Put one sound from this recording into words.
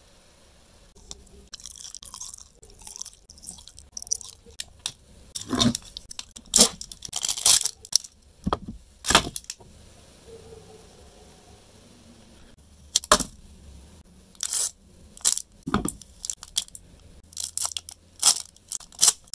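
Foil wrappers crinkle and rustle under a hand.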